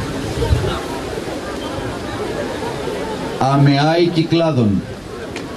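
A crowd murmurs quietly outdoors.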